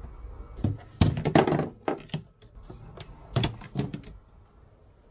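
A plastic hose knocks and scrapes against a hard surface.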